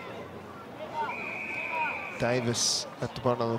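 An umpire's whistle blows a long, shrill blast.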